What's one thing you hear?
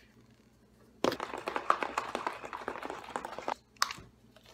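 A bottle of liquid is shaken hard, sloshing and rattling.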